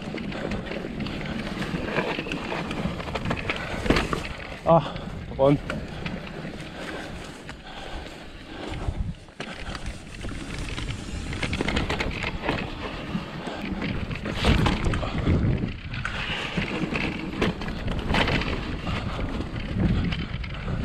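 Bike tyres crunch and rumble over a dirt trail.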